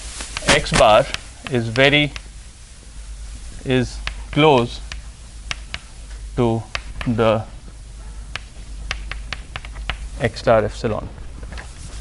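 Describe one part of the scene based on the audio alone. A man speaks in bursts, lecturing in a large echoing room.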